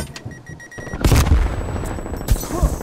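A video game explosion booms loudly.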